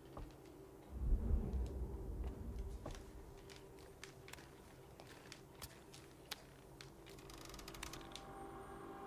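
A rope creaks and rustles as someone climbs it.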